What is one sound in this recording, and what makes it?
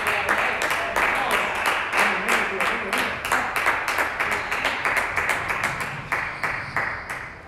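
A table tennis ball clicks sharply against paddles and the table in a large echoing hall.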